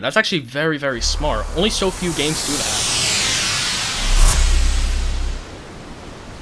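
A magical shimmer whooshes and sparkles, sweeping downward before it stops.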